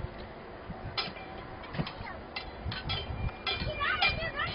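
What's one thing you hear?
Bricks clatter and knock together.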